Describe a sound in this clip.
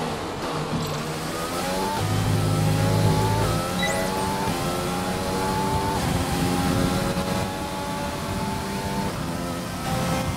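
A racing car engine screams at high revs, rising in pitch and dropping with each gear change.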